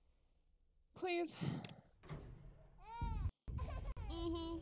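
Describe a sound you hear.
A young woman laughs into a close microphone.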